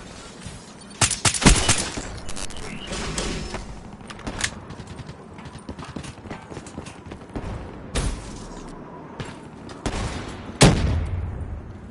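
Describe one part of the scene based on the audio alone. A rifle fires sharp shots in quick bursts.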